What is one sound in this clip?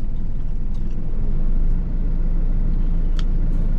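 A man chews food.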